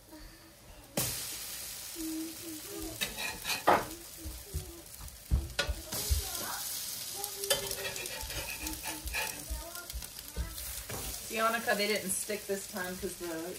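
French toast sizzles on a hot griddle.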